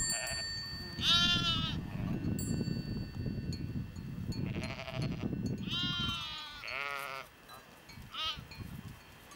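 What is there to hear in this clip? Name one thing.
Sheep and goats bleat loudly and repeatedly nearby.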